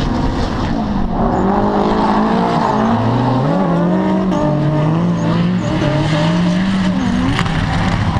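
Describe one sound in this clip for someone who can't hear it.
Car tyres squeal as they slide on the tarmac.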